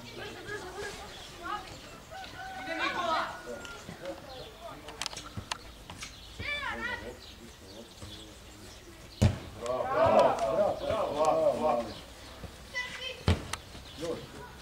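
Men in a small crowd nearby talk and call out outdoors.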